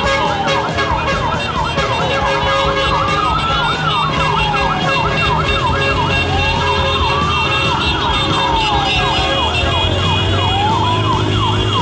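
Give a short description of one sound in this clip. A motorcycle engine revs as it rides past.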